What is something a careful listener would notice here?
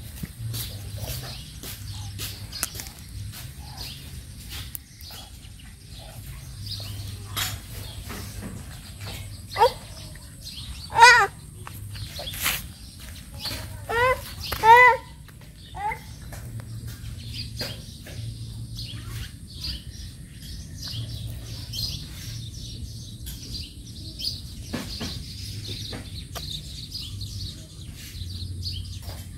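Two young dogs sniff and snuffle close by.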